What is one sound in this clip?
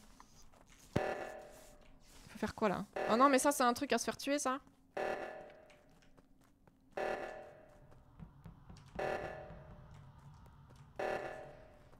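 An alarm blares in repeated long blasts.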